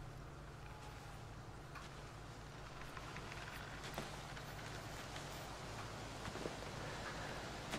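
Footsteps crunch slowly on snow.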